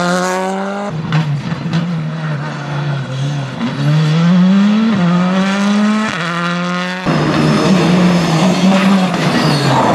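A rally car engine roars at high revs, rising and dropping with gear changes as the car speeds past.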